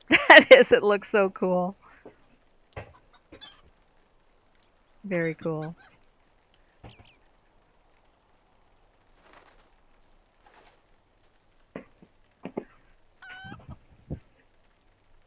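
A chicken clucks.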